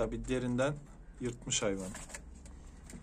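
A pigeon coos close by.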